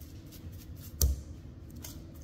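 Meat plops down into a bowl.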